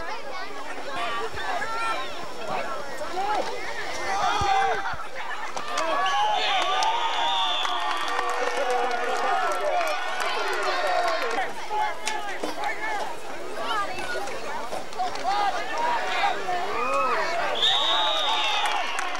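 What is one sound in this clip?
A crowd of people shouts and cheers nearby, outdoors.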